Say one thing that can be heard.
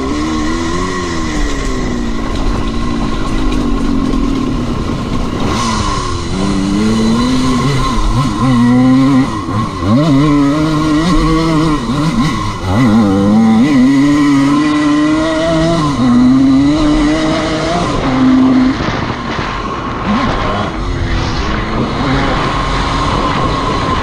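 A dirt bike engine revs and whines loudly up close, rising and falling.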